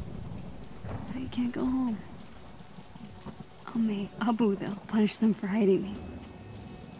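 A young woman speaks quietly and hesitantly, close by.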